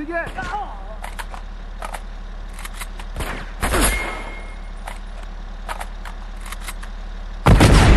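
A rifle fires sharp shots in short bursts.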